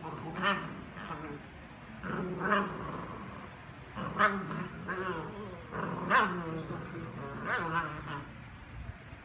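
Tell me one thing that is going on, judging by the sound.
Two small dogs howl and yowl together in short, rising cries.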